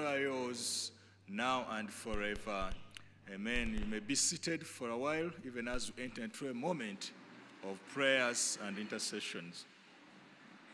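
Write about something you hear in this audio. A man speaks solemnly through a microphone.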